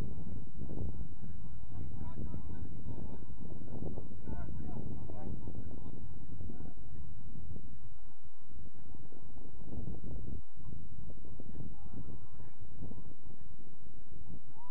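Young men call out faintly across an open field.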